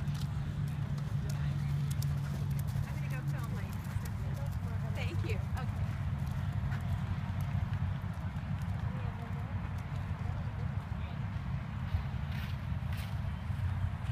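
Horse hooves thud on soft sand at a canter.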